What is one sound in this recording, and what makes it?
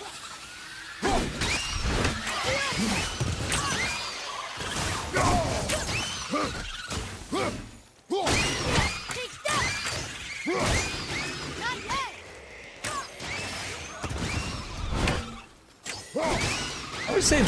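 An axe whooshes and strikes with heavy thuds.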